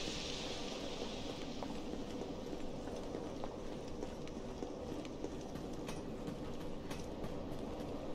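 Quick footsteps run over hard stone paving.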